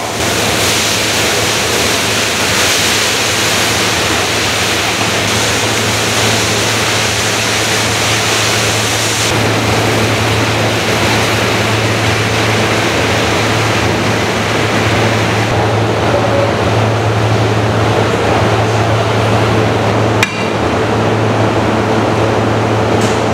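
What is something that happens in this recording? Minced meat sizzles and steams in a hot kettle.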